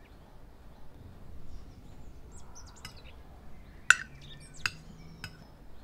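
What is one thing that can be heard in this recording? A metal spoon clinks against a glass bowl.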